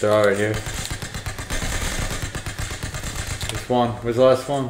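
Automatic guns fire in rapid bursts.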